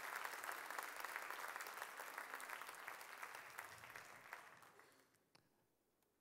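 An audience applauds and the applause fades away.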